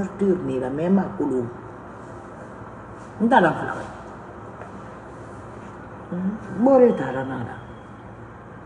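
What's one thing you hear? A woman speaks emotionally in short, wavering bursts close to the microphone.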